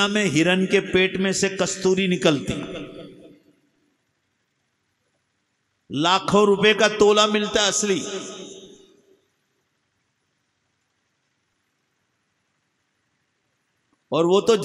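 An elderly man sings a melodic recitation through a microphone and loudspeakers, in long held phrases with pauses between.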